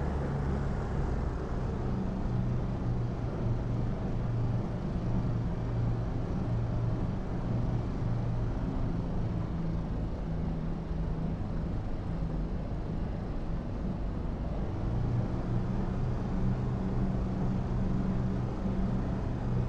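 A helicopter engine drones and rotor blades thump steadily from inside the cockpit.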